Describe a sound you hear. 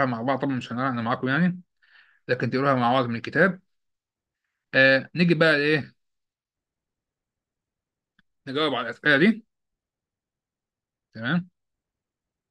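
A man speaks calmly into a microphone over an online call, in short phrases with pauses.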